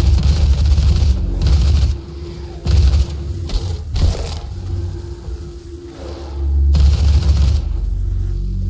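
A heavy gun fires in loud bursts.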